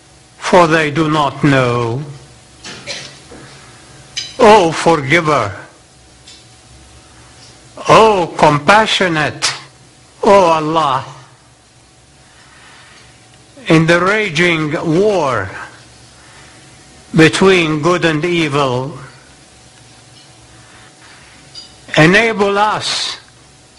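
A man speaks slowly and solemnly through a microphone, pausing between phrases, in a large echoing hall.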